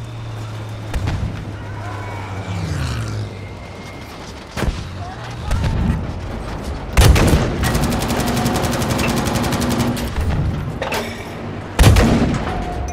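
A tank cannon fires with loud, sharp booms.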